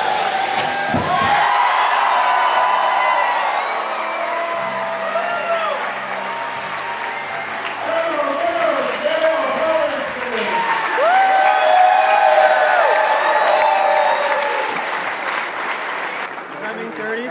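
A crowd cheers and whoops loudly in a large hall.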